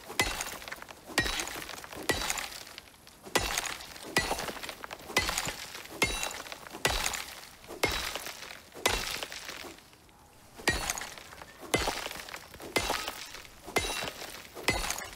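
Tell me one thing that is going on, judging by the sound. A tool chops repeatedly with sharp, regular thuds.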